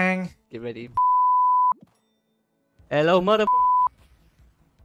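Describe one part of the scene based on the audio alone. Short electronic beeps count down.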